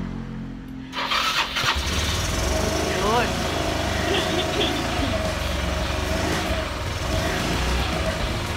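A scooter engine starts and runs loudly.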